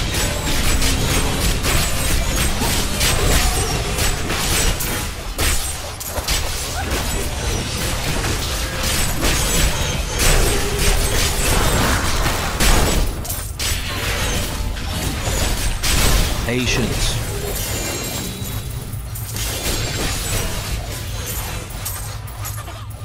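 Dramatic game music plays throughout.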